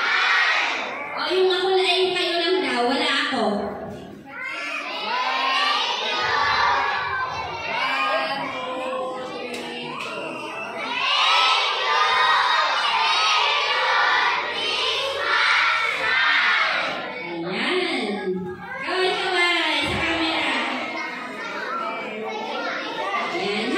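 A crowd of children chatters and calls out loudly in a hall that echoes.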